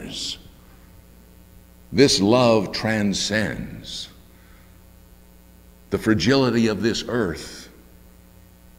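An older man speaks with feeling into a microphone, in short phrases with pauses.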